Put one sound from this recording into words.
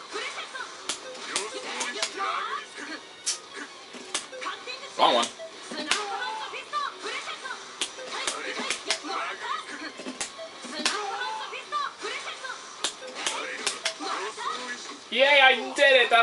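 Sharp hit sounds from a fighting game crack again and again.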